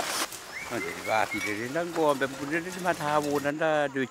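Cattle hooves clatter over loose stones.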